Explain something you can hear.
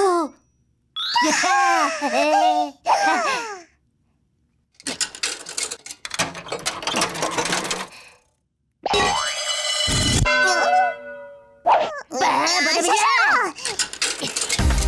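A second cartoon character answers in a high, squeaky voice.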